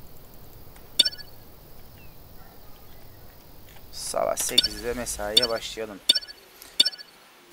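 Short electronic clicks sound as a game menu is used.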